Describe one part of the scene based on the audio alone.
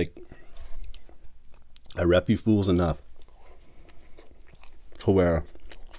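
A man chews food with soft wet sounds.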